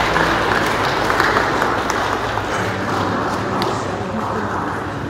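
A congregation of men and women sings together in a large echoing hall.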